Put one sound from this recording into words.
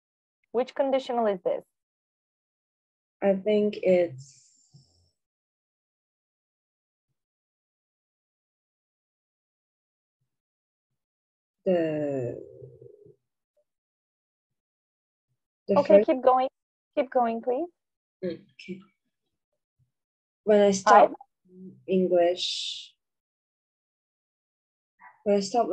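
A woman speaks calmly through an online call, in short phrases with long pauses.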